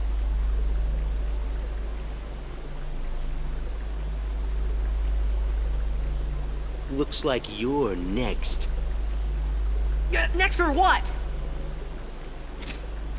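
Water splashes steadily from a fountain.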